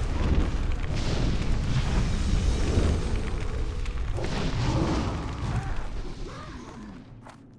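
Fiery magic spells roar and crackle in rapid bursts.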